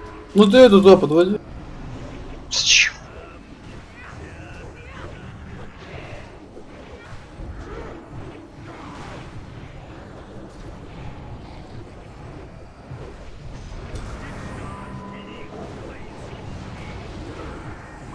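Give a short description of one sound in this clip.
Magic spells whoosh and crackle during a battle.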